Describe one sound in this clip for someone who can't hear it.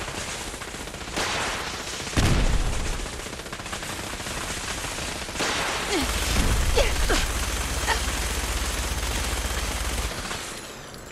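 Laser gunfire crackles and booms in rapid bursts.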